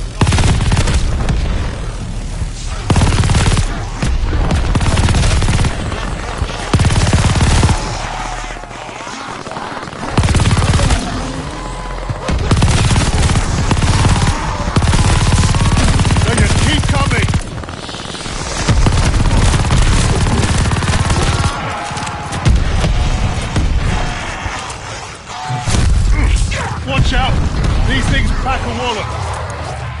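Rapid gunfire blasts loudly.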